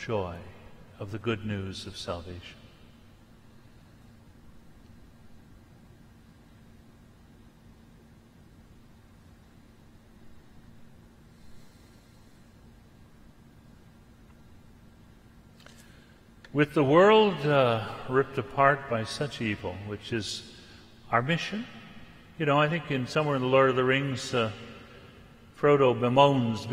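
An elderly man speaks calmly into a microphone in a large echoing hall.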